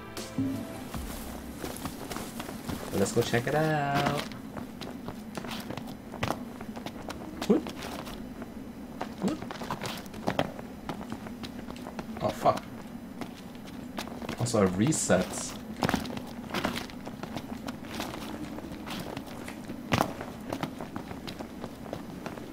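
Footsteps run quickly over rock and grass.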